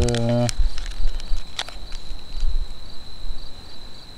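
A small paper packet rustles.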